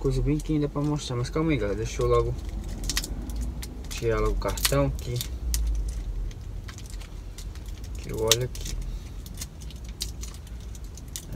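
Small metal parts click and tap in a man's hands.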